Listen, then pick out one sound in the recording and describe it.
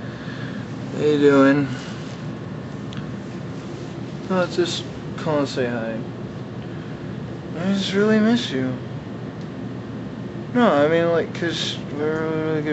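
A young man speaks close by in short, drawn-out, groaning bursts.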